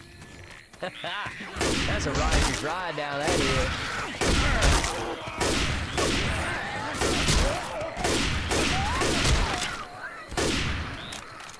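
A rifle fires shot after shot at close range.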